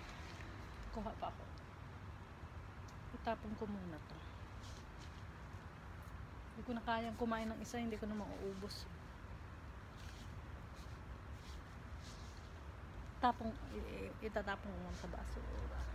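A woman speaks calmly close by, in short phrases.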